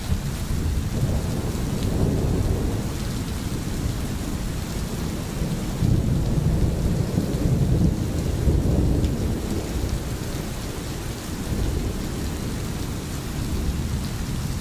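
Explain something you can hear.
A stream babbles and gurgles over stones.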